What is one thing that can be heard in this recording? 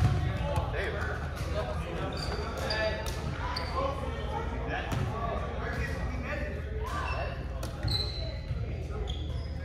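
Young men talk and call out across a large echoing gym.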